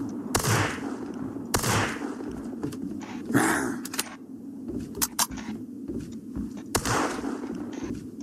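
A shotgun fires loudly several times, each blast ringing out briefly.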